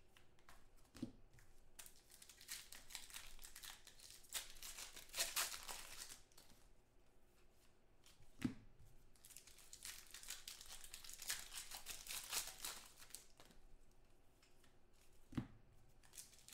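Something is set down on a table with a soft thud.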